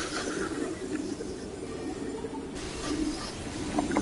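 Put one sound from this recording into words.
A magical blast whooshes and hums.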